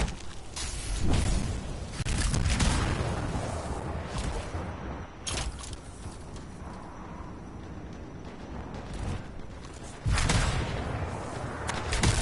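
A jet thruster roars in bursts.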